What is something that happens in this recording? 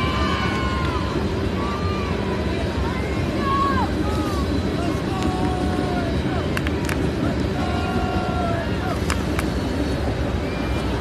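Players shout and call out to each other across an open field outdoors.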